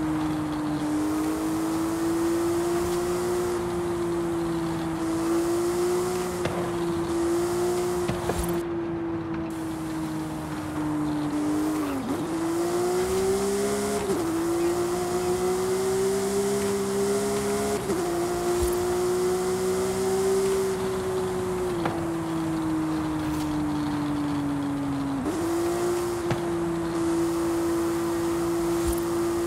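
A sports car engine roars steadily at high revs, dropping briefly with each gear shift.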